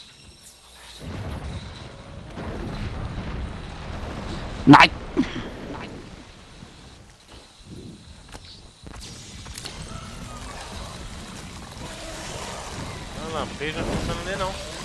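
Ice crackles and shatters around a monster.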